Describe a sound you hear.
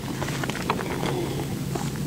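A young woman gulps a drink close to a microphone.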